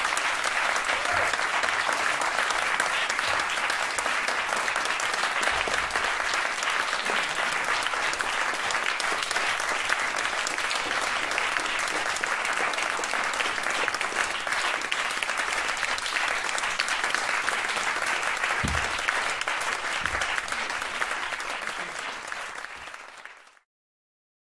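An audience applauds loudly and steadily in a room, then the applause fades away.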